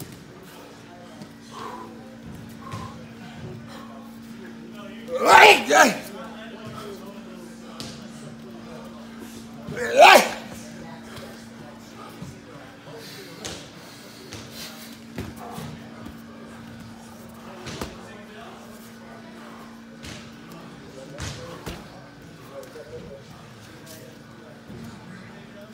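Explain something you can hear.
Bare feet shuffle and thud on a padded floor.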